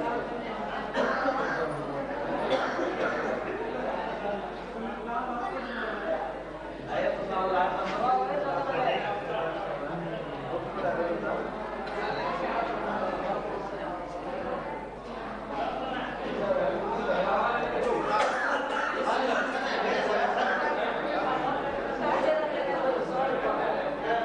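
Many men chatter and talk nearby.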